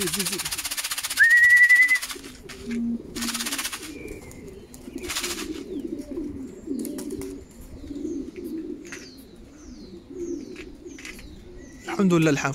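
Pigeons coo softly nearby.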